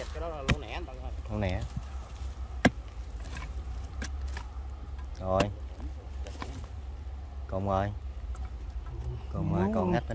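Loose soil crumbles and scrapes as it is pulled apart.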